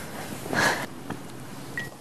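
A young man eats from a bowl with chopsticks.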